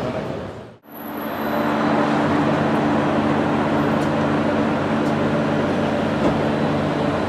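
An engine hums steadily nearby.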